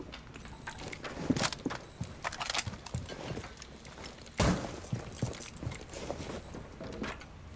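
Quick footsteps thud across a wooden floor.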